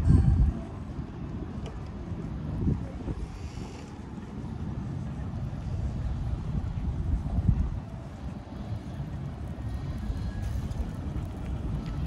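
Wind blows and rumbles across an open outdoor space.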